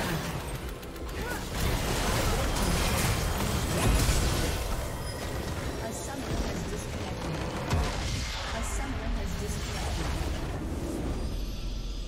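Loud game battle effects clash and blast rapidly.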